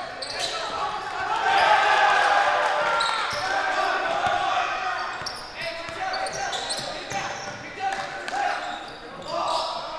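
Spectators cheer and call out.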